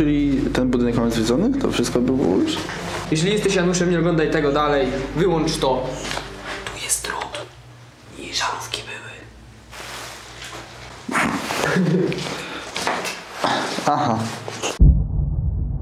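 A young man talks with animation close by.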